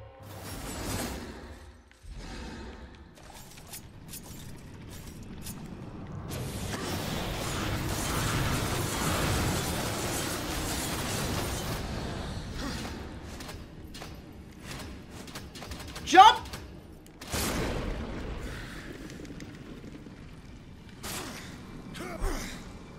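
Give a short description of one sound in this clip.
Game sound effects whoosh and rumble with a fighting clash.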